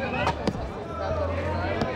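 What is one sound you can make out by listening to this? A man speaks loudly close by.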